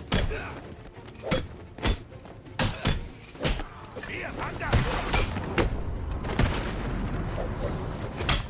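Punches and kicks thud hard against bodies in a brawl.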